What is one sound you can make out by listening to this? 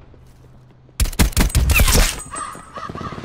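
Rapid gunfire rattles in a short, loud burst.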